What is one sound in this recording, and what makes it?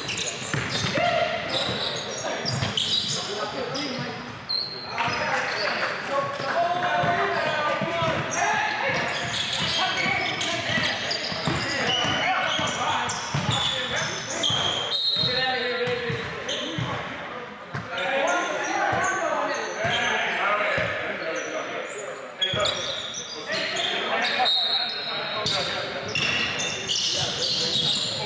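Young men call out to each other in an echoing gym.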